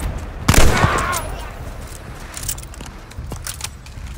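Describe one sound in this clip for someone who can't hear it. A shotgun is reloaded with metallic clicks.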